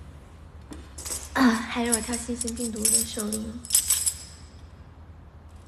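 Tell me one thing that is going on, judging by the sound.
A tambourine jingles and rattles.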